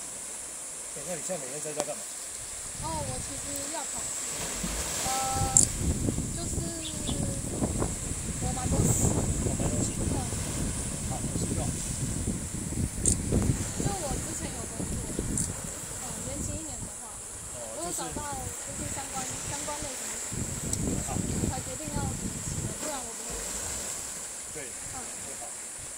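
Small waves wash and splash against rocks along the shore.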